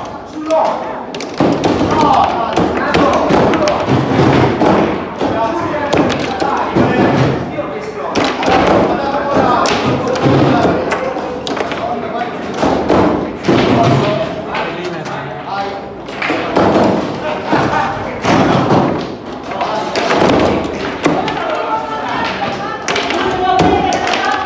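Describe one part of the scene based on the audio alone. A foosball ball clacks against plastic players and the table walls.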